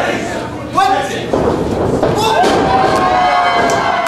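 A wrestler's body slams onto the ring mat with a heavy thud.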